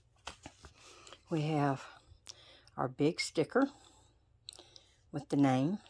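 Stiff paper rustles.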